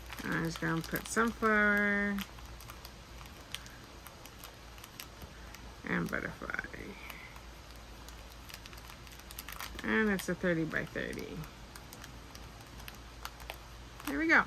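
Plastic packets crinkle and rustle as hands handle them.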